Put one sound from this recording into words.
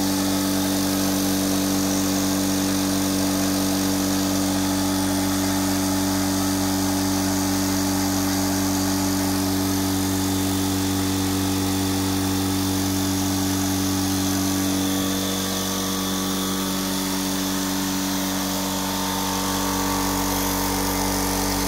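An air compressor motor hums steadily and loudly close by.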